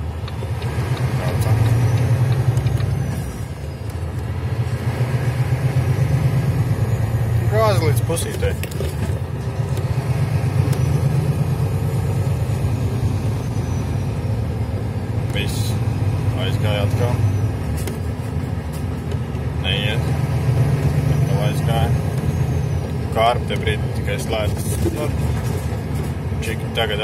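A diesel truck engine hums steadily inside the cab, rising and falling as it speeds up and shifts gears.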